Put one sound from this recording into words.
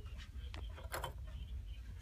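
Seashells clink softly as a hand brushes them.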